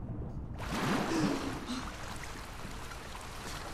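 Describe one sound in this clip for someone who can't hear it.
Water splashes and sloshes as someone wades through it.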